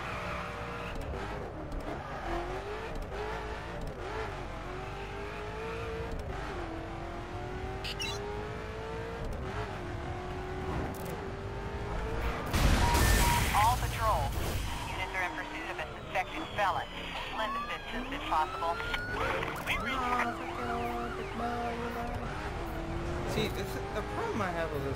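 A car engine roars and revs up and down as it speeds along.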